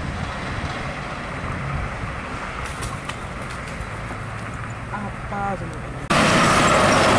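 A heavy truck engine rumbles on a road.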